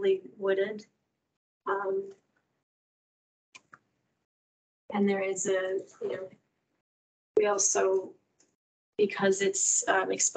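A woman speaks calmly in short phrases through an online call.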